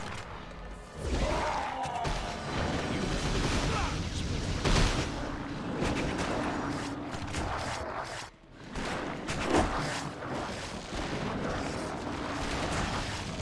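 Weapons clash and strike in a fierce fight.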